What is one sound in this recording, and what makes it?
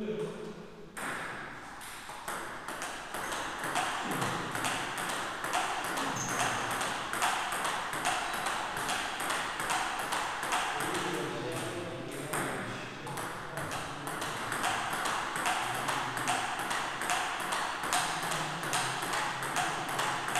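A table tennis ball bounces on a table.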